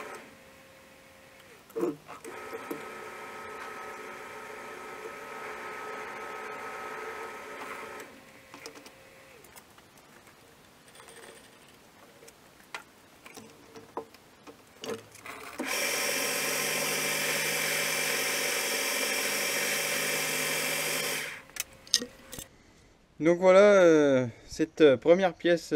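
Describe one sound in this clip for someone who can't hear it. Metal tools clink and knock against a lathe.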